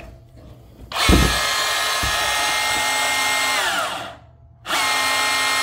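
A band saw's motor whirs loudly, winds down and starts again.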